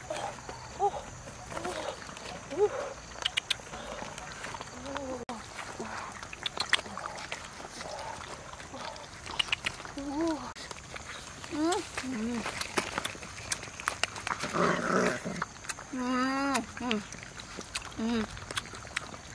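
Puppies whine and yelp close by.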